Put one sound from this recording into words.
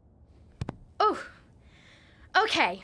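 A high, cheerful cartoon voice speaks up close.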